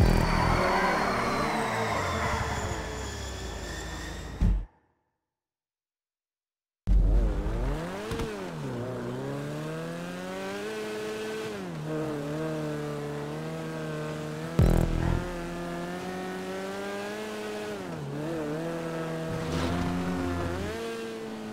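A small car engine revs and whines, rising and falling in pitch.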